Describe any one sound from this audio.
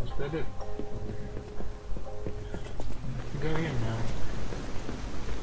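Footsteps run across a wooden floor.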